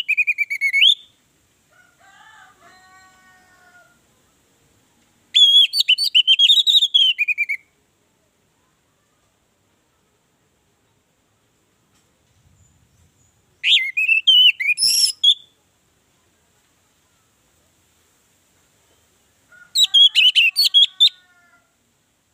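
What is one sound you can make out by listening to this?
An orange-headed thrush sings in loud bursts of song.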